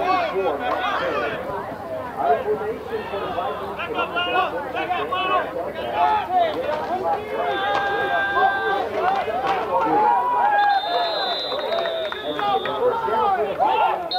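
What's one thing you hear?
Many young men shout and chatter at once outdoors.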